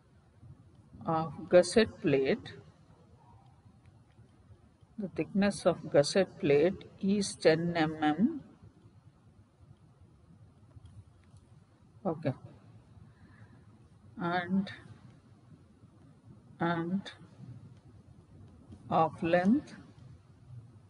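A woman speaks calmly into a microphone in short phrases with pauses.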